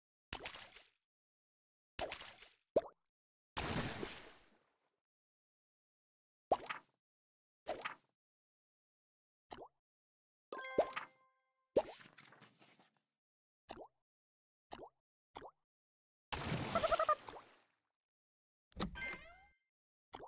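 Short game sound effects pop and chime with each tap.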